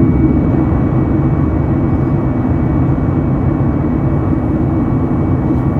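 A jet engine roars steadily inside an airliner cabin.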